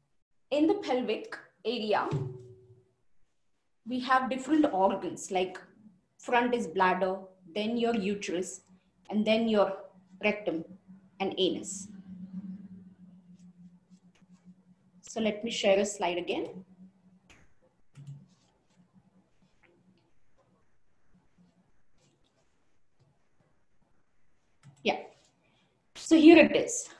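A woman speaks clearly and with animation into a microphone, heard as if over an online call.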